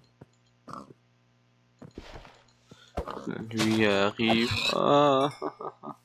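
A pig grunts and squeals.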